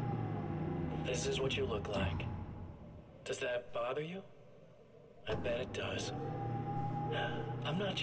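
A man's voice speaks through a television, slow and eerie.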